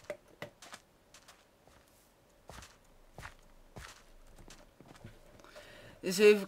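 Footsteps tread softly on sand.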